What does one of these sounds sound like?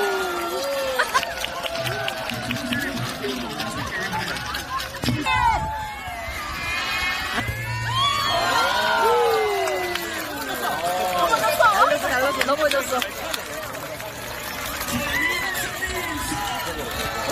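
A large crowd of children cheers and shouts outdoors.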